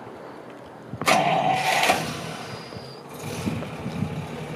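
A car engine cranks and starts up.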